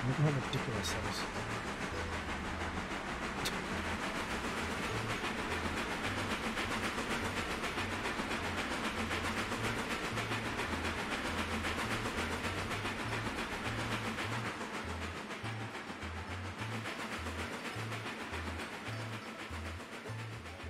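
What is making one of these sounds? A steam locomotive chuffs steadily as it pulls a train.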